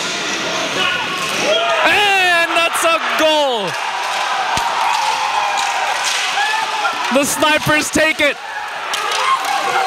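Young men cheer and yell loudly in celebration.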